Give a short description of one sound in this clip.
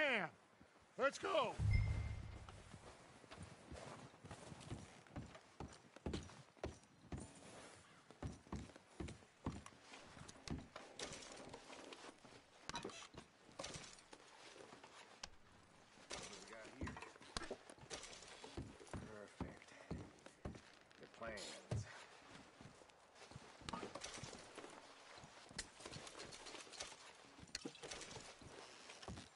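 Boots thud on wooden boards and crunch through snow.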